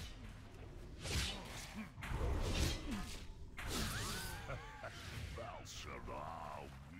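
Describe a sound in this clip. Magic blasts whoosh and crackle in a fight with a creature.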